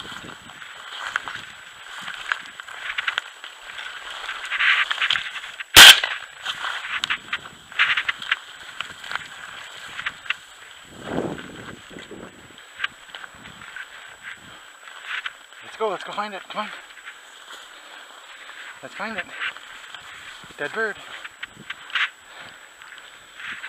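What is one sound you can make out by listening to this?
Footsteps crunch through dry brush and snow.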